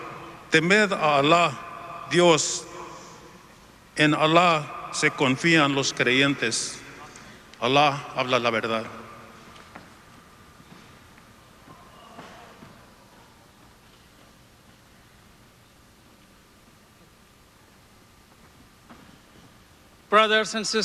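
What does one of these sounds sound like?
An elderly man speaks slowly and solemnly into a microphone, heard through loudspeakers in a large hall.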